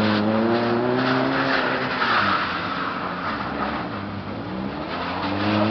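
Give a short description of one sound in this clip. Tyres hiss and crunch over packed snow.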